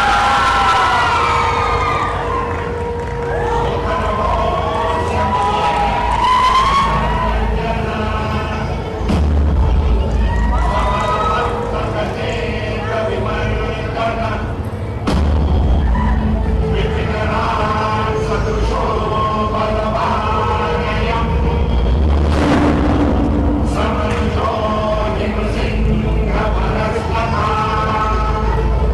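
Music plays loudly over loudspeakers in a large hall.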